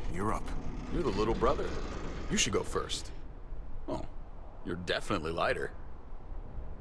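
Another man answers calmly, close by.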